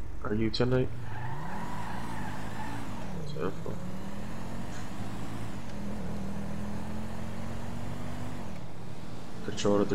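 A car engine revs and rises in pitch as the car drives off.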